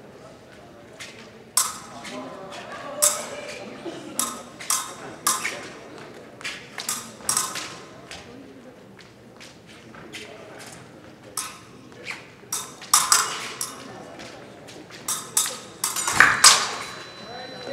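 Fencers' feet stamp and squeak on the piste.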